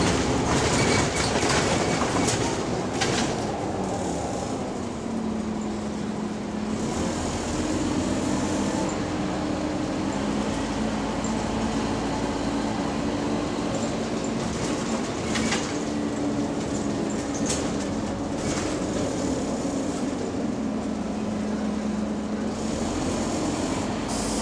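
A bus engine hums and drones steadily as the bus drives.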